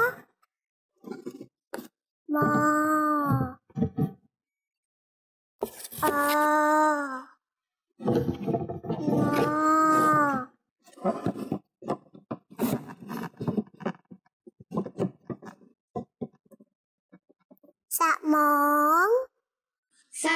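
A young child speaks clearly and slowly, close to a microphone, sounding out syllables.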